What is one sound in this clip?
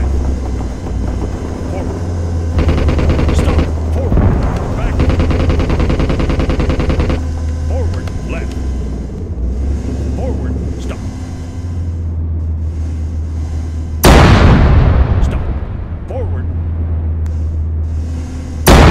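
An engine rumbles low and steady throughout.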